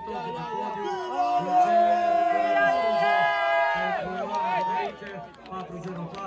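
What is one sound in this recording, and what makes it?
A group of young people sing along together.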